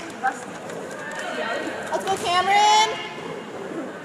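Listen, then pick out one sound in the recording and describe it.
Teenage girls shout and call out in an echoing gym.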